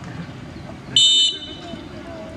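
A referee's whistle blows sharply once.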